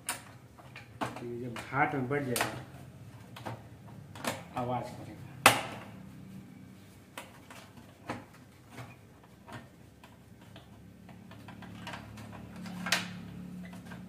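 Plastic parts click and knock as hands work on a printer.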